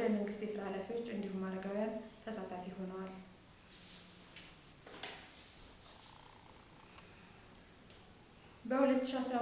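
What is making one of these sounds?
A young woman speaks calmly close to the microphone, pausing between phrases.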